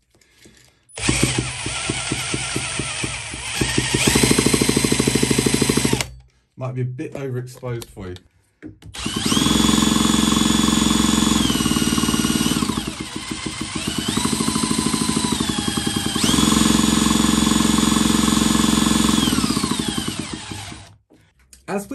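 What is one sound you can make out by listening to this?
A cordless drill whirs loudly, speeding up and slowing down in bursts.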